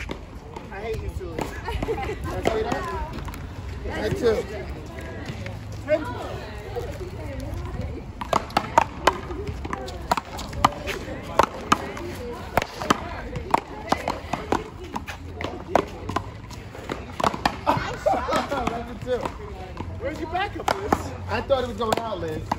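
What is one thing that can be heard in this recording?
Men and women talk and call out to each other nearby.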